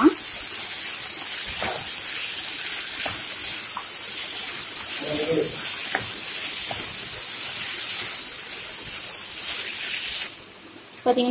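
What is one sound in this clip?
Vegetables sizzle loudly in a hot pan.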